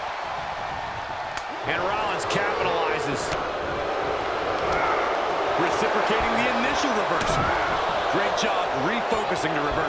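Punches land with heavy thuds in a wrestling ring.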